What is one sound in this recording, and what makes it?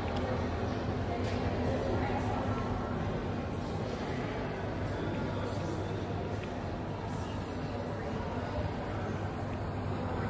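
A crowd of people murmurs and chatters in a large echoing room.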